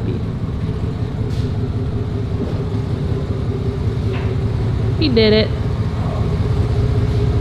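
A pickup truck engine idles with a low, steady rumble.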